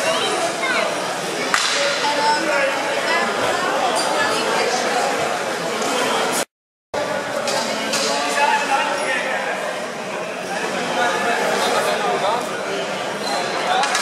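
Many voices chatter and murmur in a large echoing hall.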